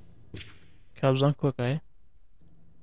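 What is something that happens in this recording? A young man speaks close to a microphone with animation.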